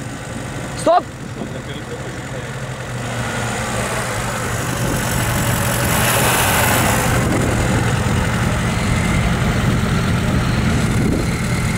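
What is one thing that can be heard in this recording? A car engine idles with a steady low rumble that grows louder.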